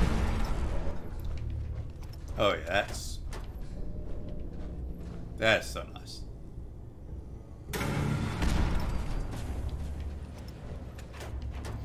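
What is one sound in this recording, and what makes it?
Heavy armoured footsteps thud on a hard floor.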